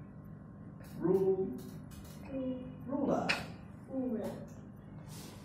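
A young boy answers in a soft voice.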